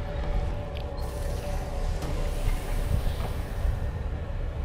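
Sparks crackle and hiss.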